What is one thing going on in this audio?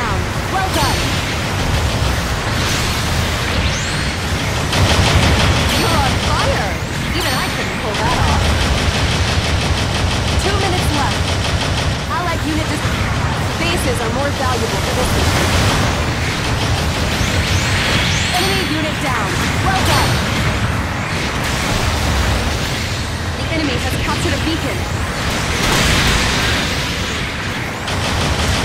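Rocket thrusters roar steadily.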